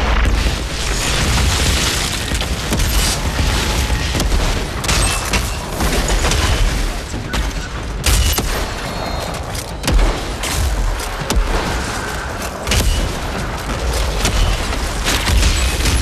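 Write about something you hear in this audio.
Heavy guns fire in loud bursts.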